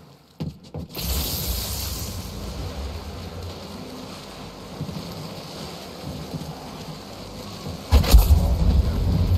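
Electricity crackles and buzzes over water.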